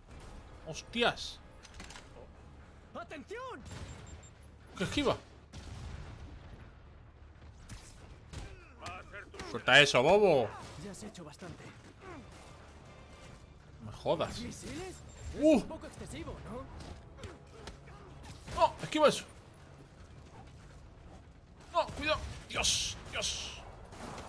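Punches and kicks land with heavy thuds in a brawl.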